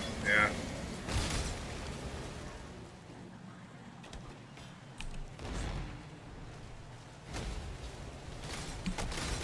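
Game sound effects of spells and impacts burst and whoosh.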